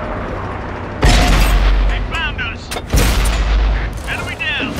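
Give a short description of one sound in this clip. A tank gun fires with loud booms.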